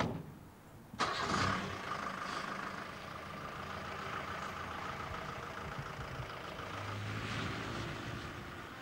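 A van engine idles with a steady hum.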